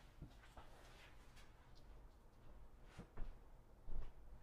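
A person walks with footsteps on a hard floor.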